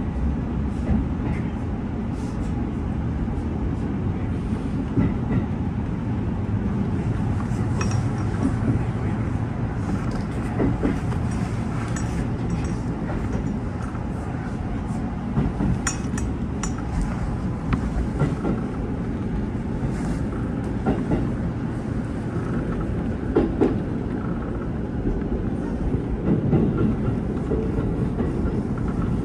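Train wheels clack and rattle over rail joints.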